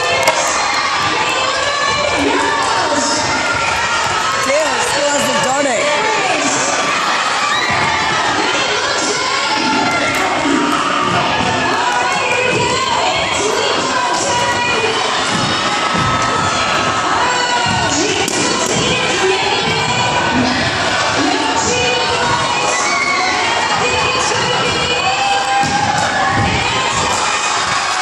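A large crowd of students cheers and shouts in a large echoing hall.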